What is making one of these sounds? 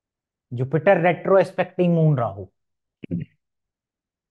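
A man speaks with animation close to a clip-on microphone.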